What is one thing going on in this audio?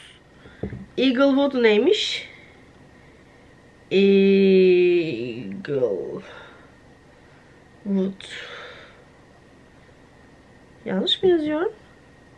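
A woman speaks slowly and hesitantly, close by, in short bursts with pauses.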